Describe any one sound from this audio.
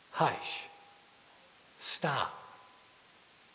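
A middle-aged man speaks in short bursts through a microphone in a large echoing hall.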